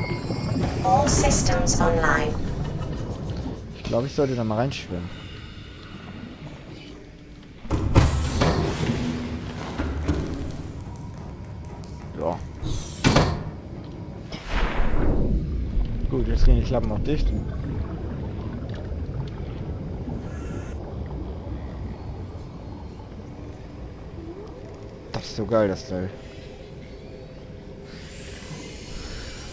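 A deep underwater rumble hums steadily.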